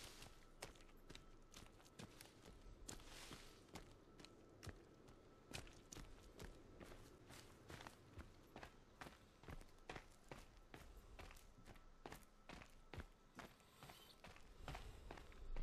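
Footsteps swish steadily through tall grass.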